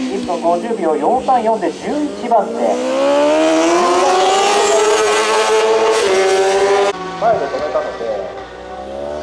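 A four-cylinder superbike downshifts with sharp throttle blips.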